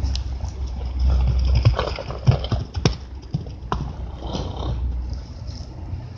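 A horse's hooves thud on the grass as it gallops.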